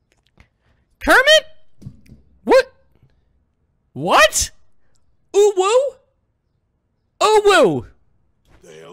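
A young man speaks loudly and animatedly into a microphone, in short bursts.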